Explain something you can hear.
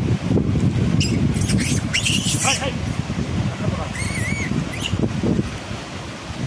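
Monkeys squeal and shriek close by.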